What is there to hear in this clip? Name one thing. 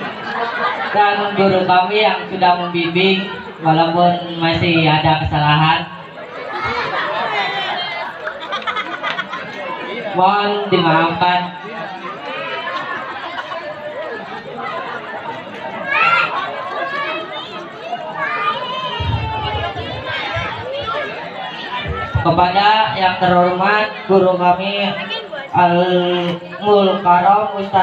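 A young man chants in a melodic voice through a microphone.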